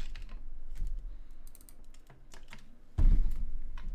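A plastic bottle crackles as it is handled.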